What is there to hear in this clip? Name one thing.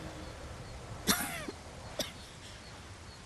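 An elderly woman coughs harshly.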